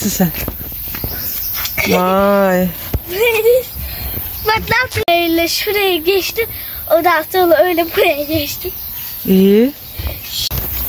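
A young girl talks and laughs with animation close by.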